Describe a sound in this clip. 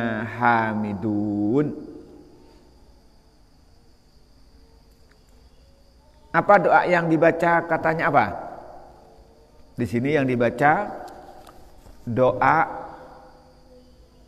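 A man chants melodically in a long, drawn-out voice through a microphone, in a reverberant hall.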